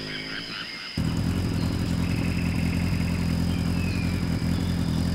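A motorbike engine hums steadily as it rides closer.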